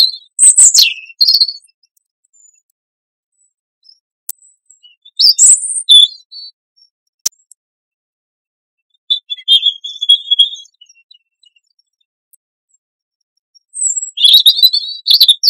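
A small songbird sings short bursts of high, clear warbling phrases close by, with pauses between them.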